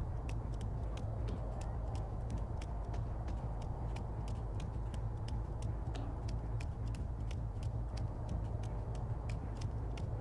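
Quick footsteps run across a hard floor.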